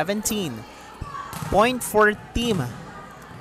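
A ball is struck and bounces on a hard court.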